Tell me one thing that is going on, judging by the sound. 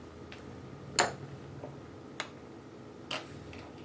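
Small glass stones click against glass.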